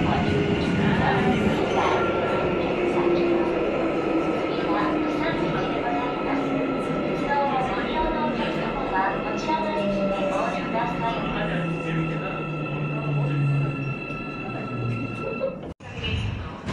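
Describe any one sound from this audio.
Electric motors of a subway train whine down in pitch as the train slows.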